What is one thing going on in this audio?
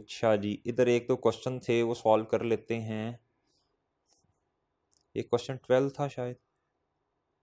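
A man speaks calmly into a microphone, lecturing.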